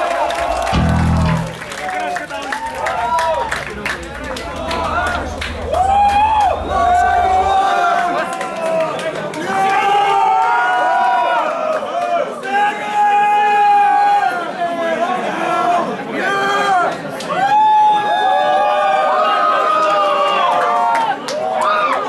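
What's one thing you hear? An electric guitar plays loudly.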